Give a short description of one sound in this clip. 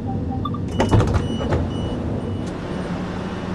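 A door warning tone beeps rapidly.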